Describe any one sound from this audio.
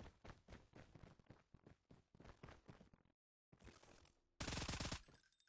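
Quick footsteps thud on grass.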